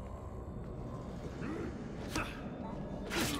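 A monster snarls and growls.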